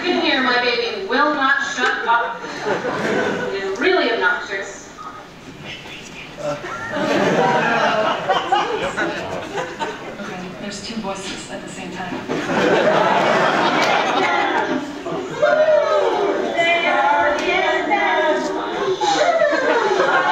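A man speaks through loudspeakers in a large echoing hall.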